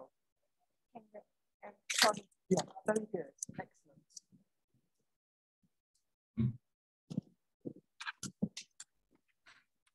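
A young boy reads aloud slowly.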